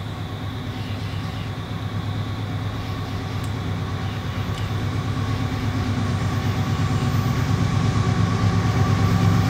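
A train engine rumbles and hums, growing louder as it approaches.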